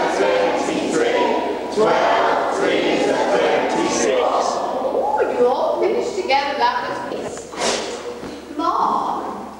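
Young girls sing together close by.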